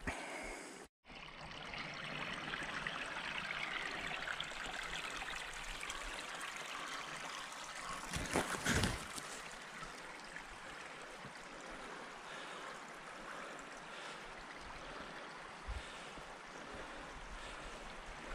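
A small stream trickles and babbles close by.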